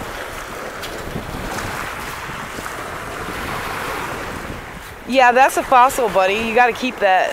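Small waves lap gently on a pebble shore.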